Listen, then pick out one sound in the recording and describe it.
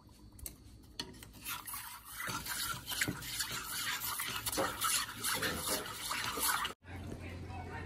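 Milk bubbles and hisses as it boils in a pot.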